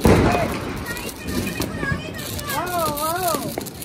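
A sparkler fizzes and crackles close by.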